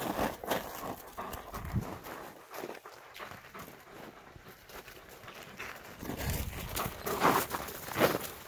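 Paws scuffle and crunch in snow.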